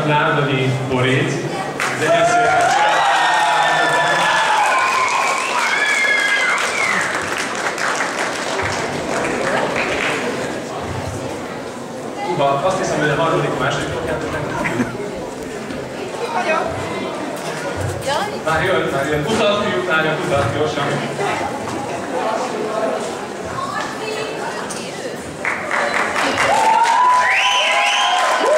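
An audience cheers and shrieks in a large echoing hall.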